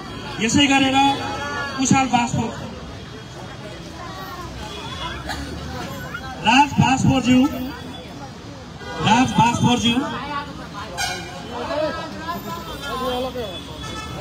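A man speaks into a microphone over a loudspeaker, calling out with animation.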